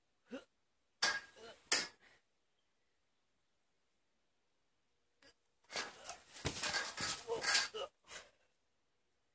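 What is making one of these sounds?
A trampoline mat thumps as a person lands on it.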